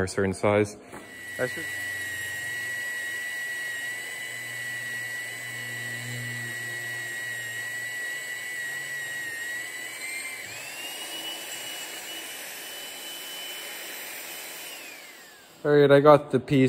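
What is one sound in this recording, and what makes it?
A magnetic drill whirs steadily as it bores through steel.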